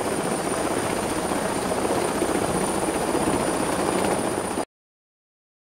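A gyroplane rotor whirs.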